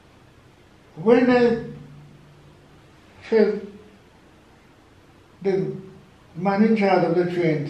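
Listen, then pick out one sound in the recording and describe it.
An elderly man speaks calmly and closely.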